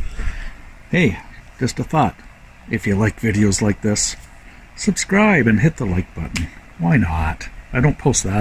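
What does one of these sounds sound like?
A middle-aged man talks calmly and close up.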